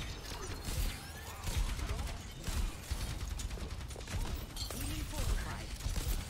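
Energy blasts crackle and thud in a video game.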